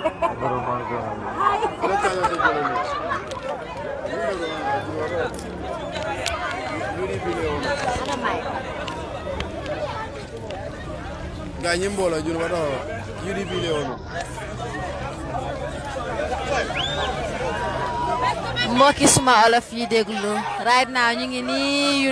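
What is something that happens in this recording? A large crowd chatters and shouts loudly nearby.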